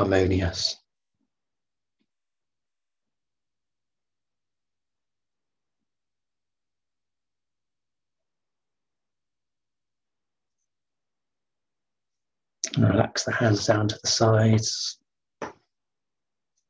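A man speaks calmly over an online call, with long pauses.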